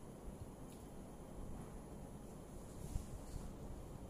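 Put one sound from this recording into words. A woman chews food quietly.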